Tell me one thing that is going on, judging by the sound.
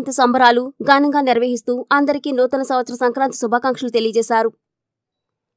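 A man speaks loudly with animation.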